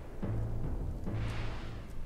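Explosions and gunfire boom in a battle.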